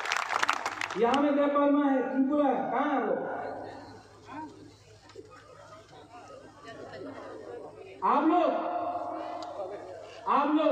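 A man speaks forcefully into a microphone, heard through loudspeakers outdoors.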